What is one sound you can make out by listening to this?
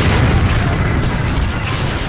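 An electric beam hums and crackles in a video game.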